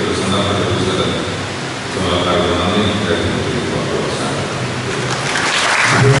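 An elderly man speaks steadily through a microphone and loudspeaker in an echoing hall.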